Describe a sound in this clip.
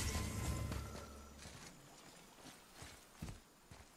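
Heavy footsteps crunch on the ground.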